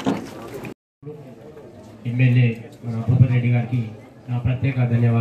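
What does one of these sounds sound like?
A man speaks forcefully into a microphone over a loudspeaker.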